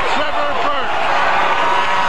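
A large crowd cheers and roars.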